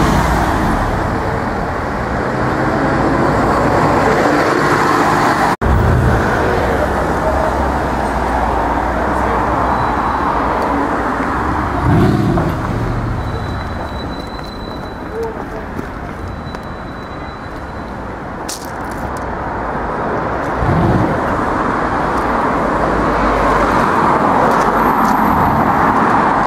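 A large engine revs as a vehicle pulls away slowly.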